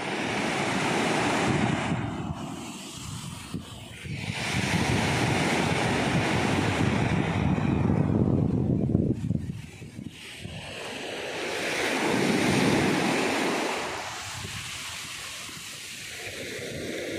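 Waves break and wash up onto a beach in surges.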